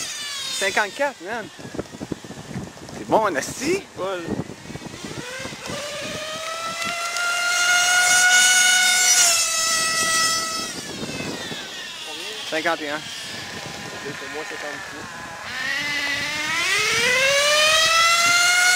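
A motorcycle engine revs high, rising and dropping as it shifts gears.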